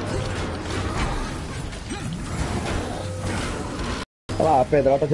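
Heavy blows and metallic clangs ring out in a fight.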